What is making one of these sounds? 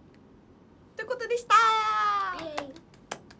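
Young women laugh and cheer loudly together.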